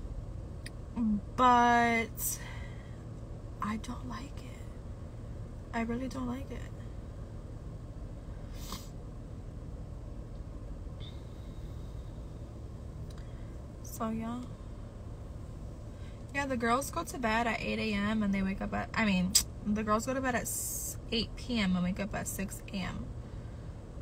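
A young woman talks casually and close by, in bursts with pauses.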